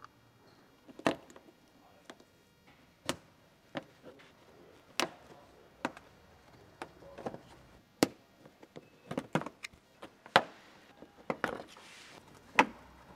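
Plastic trim clips snap and click as they are pried loose.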